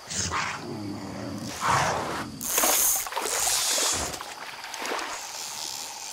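A fishing reel whirs as line is reeled in.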